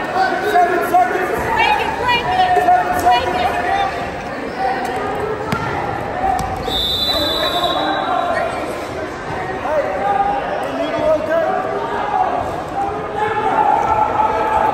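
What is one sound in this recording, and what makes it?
Spectators shout and cheer loudly in a large echoing gym.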